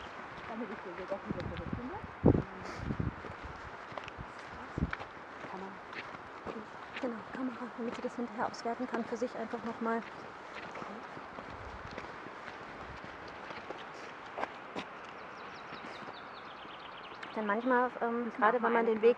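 Footsteps crunch on a gravel track.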